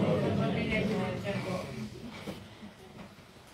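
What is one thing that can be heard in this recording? A saxophone plays a slow tune in a large echoing hall.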